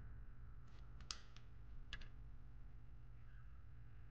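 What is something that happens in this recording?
Metal engine parts clink sharply.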